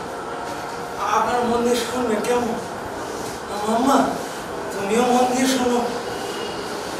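A man sings through a loudspeaker in long held notes.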